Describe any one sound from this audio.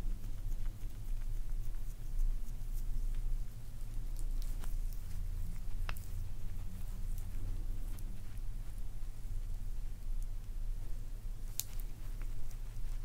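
Hands rub and knead skin close to a microphone, with soft brushing sounds.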